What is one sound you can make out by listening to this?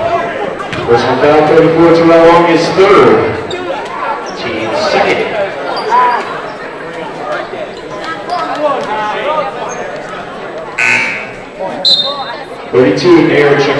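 A crowd cheers and shouts in a large echoing gym.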